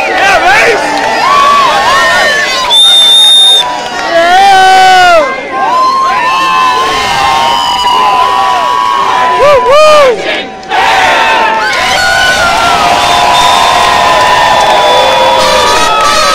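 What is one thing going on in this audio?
A large crowd of men and women shouts and cheers loudly outdoors.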